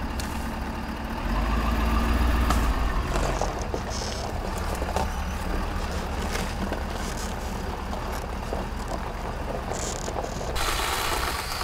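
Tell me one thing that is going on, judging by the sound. A truck engine idles steadily nearby.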